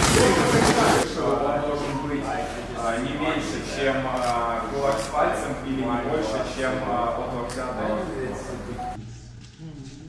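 A man speaks calmly and clearly to a group nearby.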